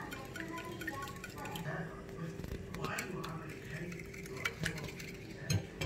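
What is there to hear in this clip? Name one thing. A whisk beats eggs against a bowl with quick clinks.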